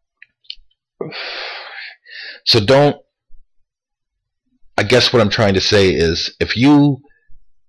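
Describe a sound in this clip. A man speaks calmly and close to the microphone, in short bursts.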